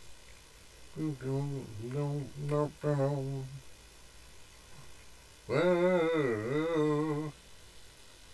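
A man speaks into a nearby microphone in a calm voice.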